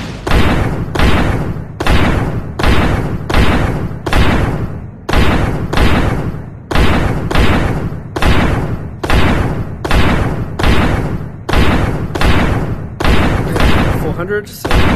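A heavy gun fires booming shots at a steady pace.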